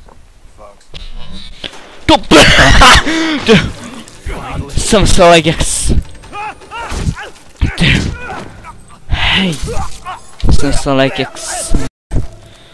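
A young man shouts in fright into a microphone.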